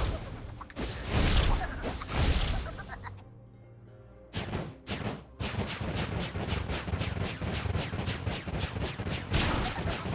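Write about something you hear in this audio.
Magical blasts burst and crackle.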